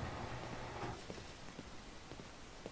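Footsteps tap on a stone step.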